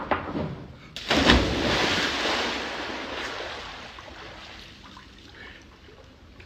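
A man splashes into a swimming pool.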